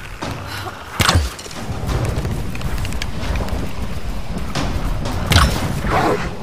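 An arrow is loosed from a bow with a sharp twang.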